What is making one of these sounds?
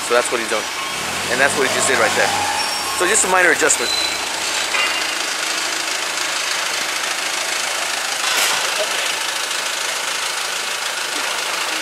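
A forklift engine hums and rumbles as the forklift drives up.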